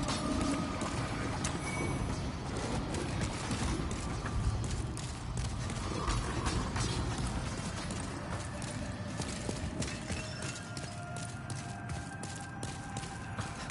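Armoured footsteps clank on stone.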